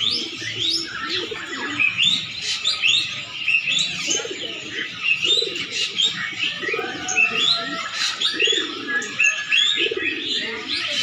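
Pigeons coo in low, throaty bursts close by.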